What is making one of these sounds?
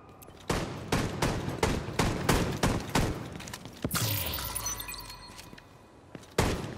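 Heavy footsteps run on pavement.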